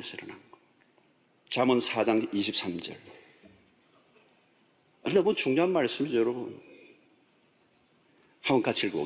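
A middle-aged man speaks slowly and earnestly into a microphone.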